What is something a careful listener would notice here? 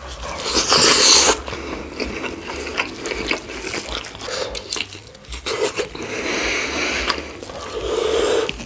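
A man chews food wetly and loudly close to a microphone.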